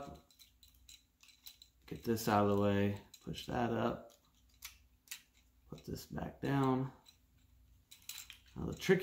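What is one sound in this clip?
Plastic toy parts click and snap in a man's hands.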